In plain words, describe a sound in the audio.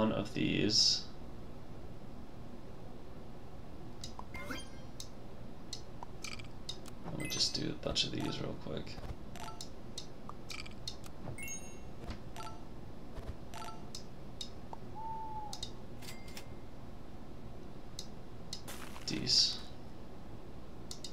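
Short playful electronic blips and pops sound now and then.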